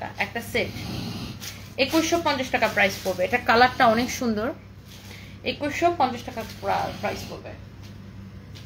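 A young woman talks with animation close to a phone microphone.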